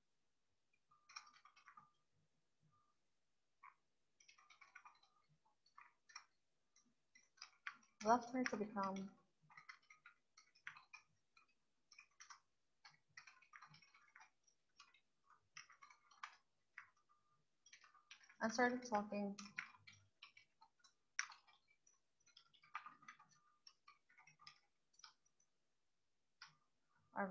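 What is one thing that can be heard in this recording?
Computer keys click quickly and unevenly as someone types.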